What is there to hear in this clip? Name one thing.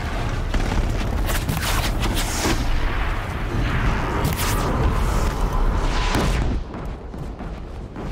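Arrows whoosh from a bow.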